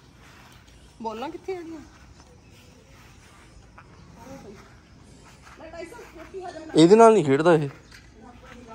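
A young girl calls out close by, with animation.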